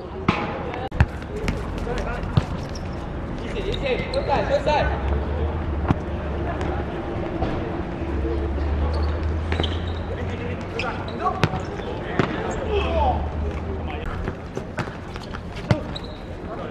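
A football is kicked on a hard court outdoors.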